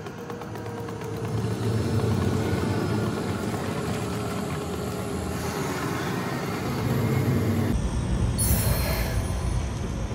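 Footsteps walk over stone.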